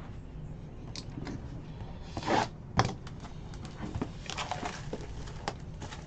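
Hands tear open a cardboard box with rustling and scraping.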